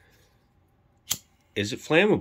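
A lighter clicks once.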